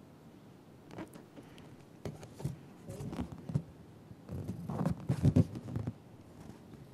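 A young girl blows into a balloon.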